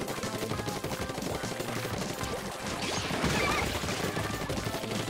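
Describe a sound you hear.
Game ink guns fire with wet, splattering bursts.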